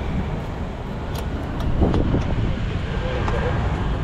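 Keys jingle and click into a scooter's ignition.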